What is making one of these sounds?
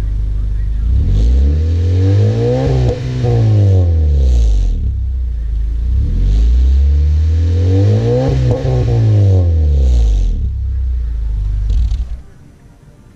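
A car engine revs hard through its exhaust, rising and falling twice.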